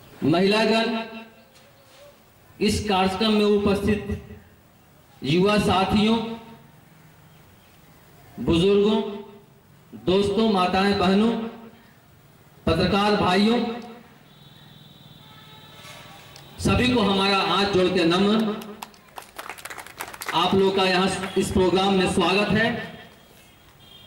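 A man speaks loudly into a microphone through a loudspeaker, in short bursts with pauses.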